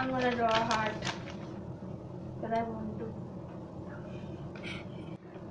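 Paper rustles as a young woman handles it.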